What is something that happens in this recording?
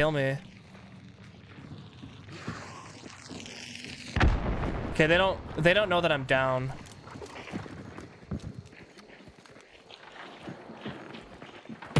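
Footsteps thud on wooden boards and stony ground.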